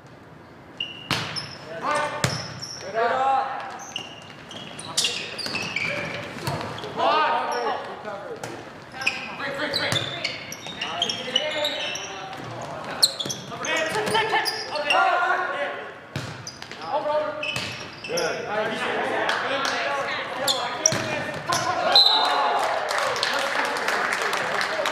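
Young players shout and call to each other across an echoing gym.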